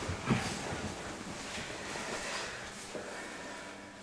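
Chairs scrape and shuffle as several people rise from their seats.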